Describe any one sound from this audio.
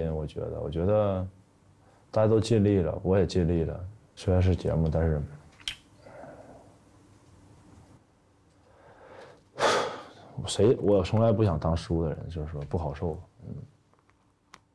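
A young man speaks calmly into a clip-on microphone, close by.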